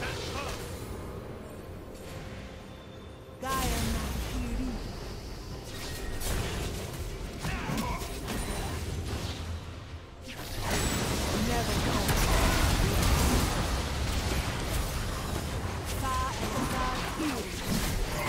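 Video game spell effects whoosh, zap and crackle during a hectic battle.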